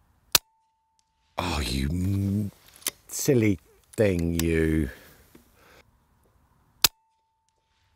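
An air rifle fires with a sharp crack.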